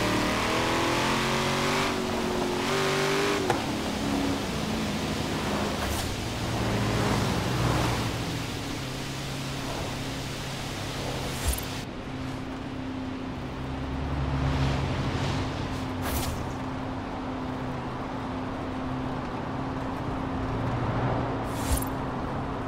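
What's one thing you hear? A sports car engine roars at high speed and shifts through gears.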